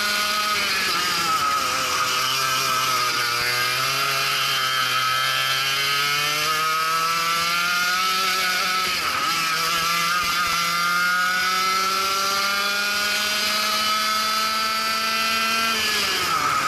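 A kart engine whines loudly close by, its pitch rising and falling as the kart speeds up and slows down.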